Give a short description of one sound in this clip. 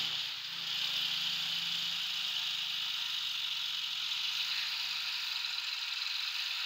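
A diesel tractor engine chugs as the tractor drives slowly.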